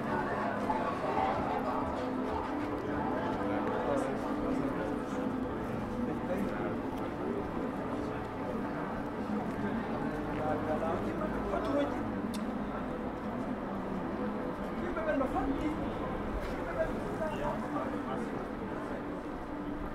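Men and women chatter at a distance in an open outdoor space.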